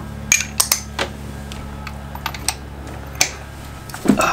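Metal tools clink and tap against engine parts.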